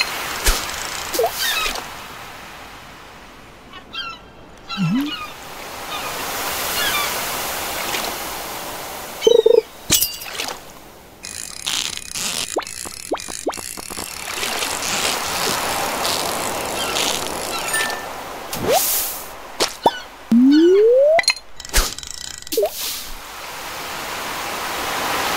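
A float plops into water.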